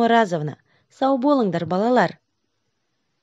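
A young woman speaks calmly and warmly, close to a microphone.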